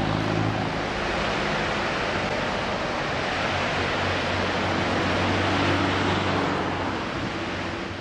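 Tyres roll on the road with a steady rushing noise.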